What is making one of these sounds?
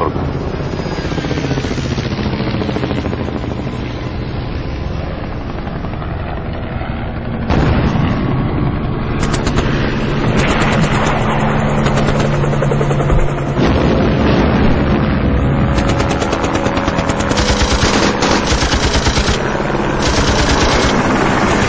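Helicopter rotors thump overhead.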